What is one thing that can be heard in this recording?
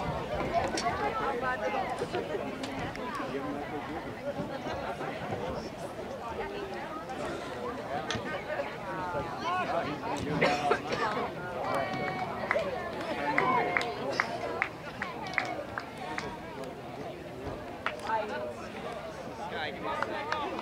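A crowd of spectators chatters and calls out from the sidelines outdoors.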